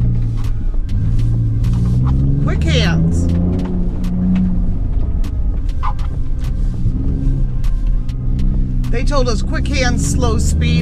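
A pickup truck's engine roars steadily.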